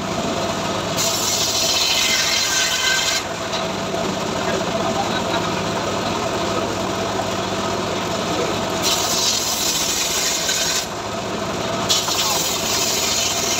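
A circular saw whines loudly as it cuts through a log.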